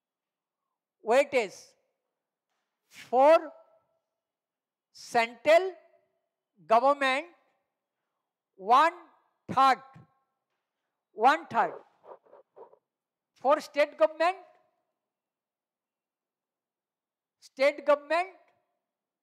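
A man speaks in short, clear phrases into a close microphone, with pauses between them.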